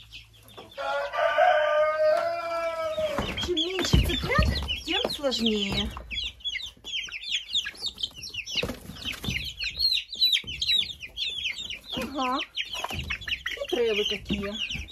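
Many chicks peep and cheep up close.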